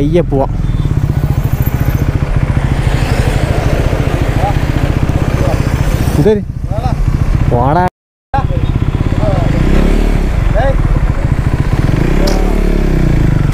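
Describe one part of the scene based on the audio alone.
A motorcycle engine idles with a steady throbbing close by.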